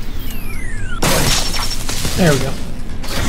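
Electric sparks burst and crackle loudly.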